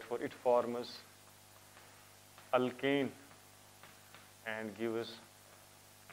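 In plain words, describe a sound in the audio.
A man speaks in short phrases, lecturing.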